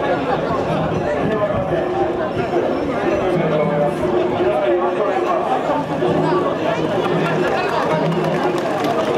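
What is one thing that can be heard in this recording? A man calls out rhythmically over a crowd.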